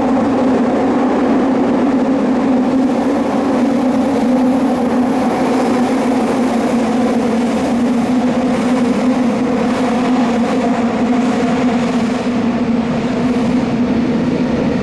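A subway train rumbles and hums loudly as it runs along the track.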